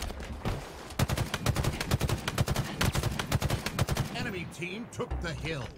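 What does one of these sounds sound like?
Rapid gunshots fire in a burst.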